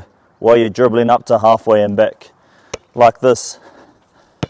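A man speaks clearly to the listener outdoors.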